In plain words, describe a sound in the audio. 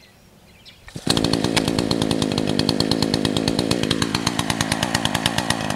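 A chainsaw engine starts and runs loudly, close by.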